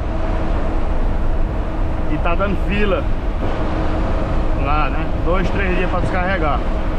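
Tyres hum on a paved road.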